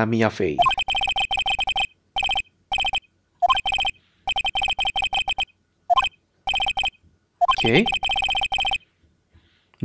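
Rapid electronic blips tick in quick bursts.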